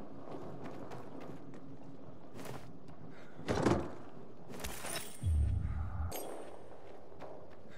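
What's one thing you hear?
Footsteps crunch over scattered debris.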